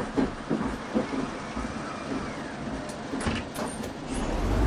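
A bus door hisses and thuds shut.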